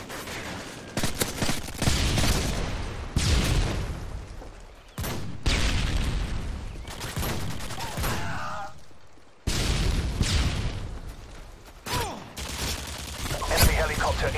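Gunshots crack out loudly in short bursts.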